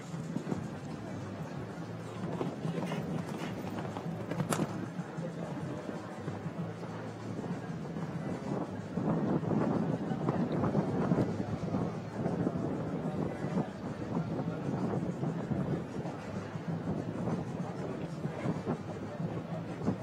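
A horse's hooves thud on soft sand.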